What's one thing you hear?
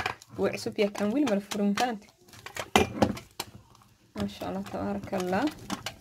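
A metal jar lid scrapes and clicks as it is twisted.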